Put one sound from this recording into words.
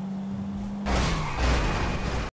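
A car crashes into another car with a crunch.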